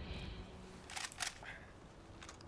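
A rifle's lever clicks and clacks.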